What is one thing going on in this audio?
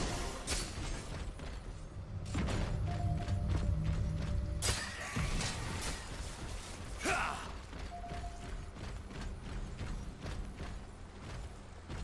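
Heavy metal footsteps thud.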